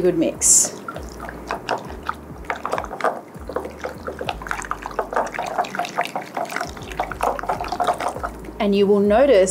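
Chopsticks click and scrape against a glass bowl while mixing.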